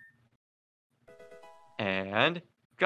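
A short electronic jingle plays.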